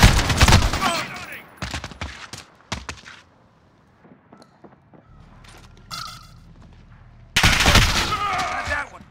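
Gunshots fire in loud, rapid bursts.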